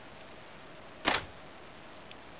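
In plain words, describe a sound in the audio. A button on a device clicks sharply.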